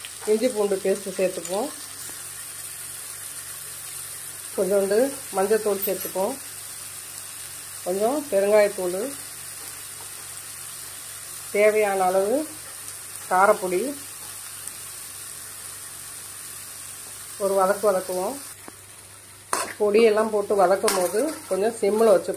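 A metal spatula scrapes and stirs food in a metal pan.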